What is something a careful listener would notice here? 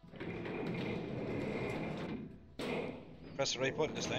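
A metal folding gate slides shut with a clatter.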